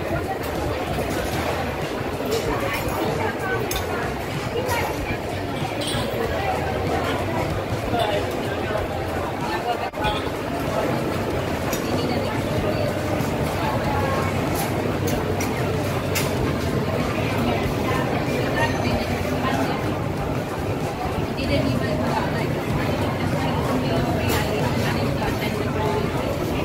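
A crowd chatters in a busy, echoing hall.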